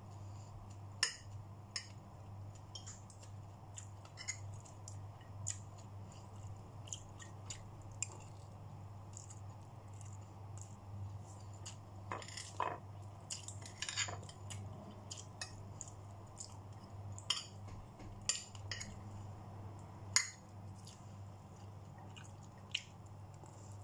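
A metal fork and spoon clink against a plate.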